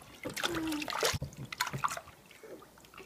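Water splashes in a small tub.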